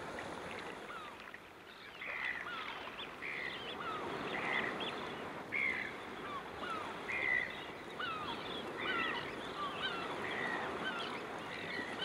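Turnstones give sharp, chattering calls.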